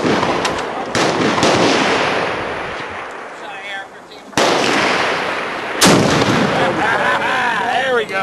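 Other guns fire loud shots nearby.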